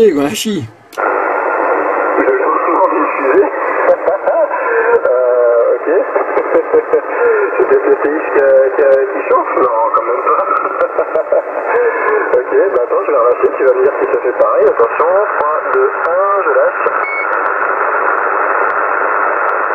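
A man's voice comes thin and crackly through a radio loudspeaker.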